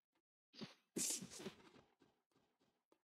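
A character dashes forward with a quick rushing whoosh.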